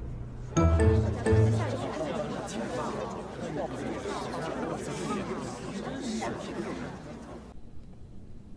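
A crowd of men and women chatter and murmur in a large room.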